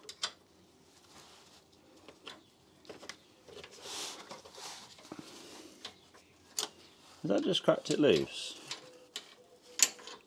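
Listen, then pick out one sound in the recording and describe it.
A gloved hand taps and scrapes against metal parts.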